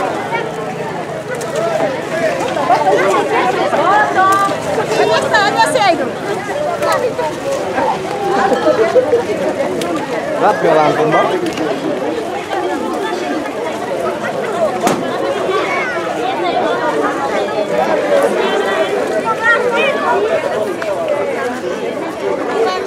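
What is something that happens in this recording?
A crowd of men, women and children chatters and calls out nearby outdoors.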